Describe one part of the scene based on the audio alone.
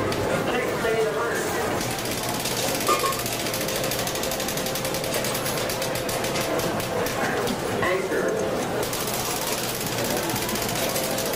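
Slot machines chime and jingle steadily in a busy room.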